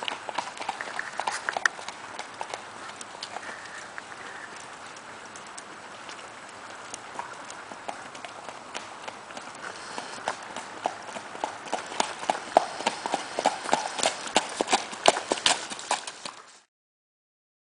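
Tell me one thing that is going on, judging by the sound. A gaited Paso horse's hooves clatter in a quick even beat on a gravel road.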